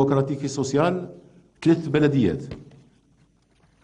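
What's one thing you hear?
A middle-aged man reads out formally into a microphone, in a large echoing hall.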